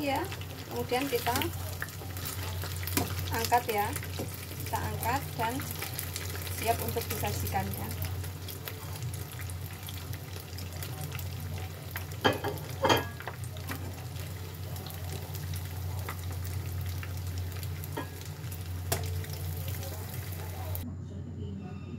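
Oil sizzles steadily as food fries in a pan.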